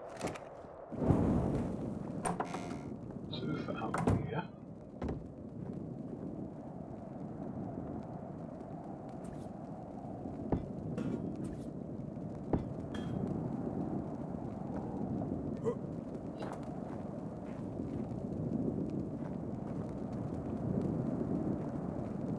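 A torch flame crackles and roars steadily.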